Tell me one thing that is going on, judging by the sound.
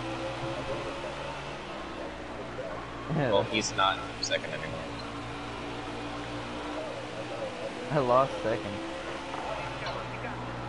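A race car engine roars steadily at high speed.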